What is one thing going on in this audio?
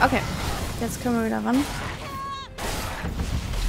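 A monster lets out shrill, wavering screeches.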